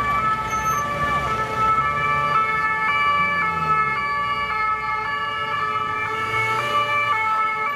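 A two-tone police siren wails loudly close by, switching pitch back and forth.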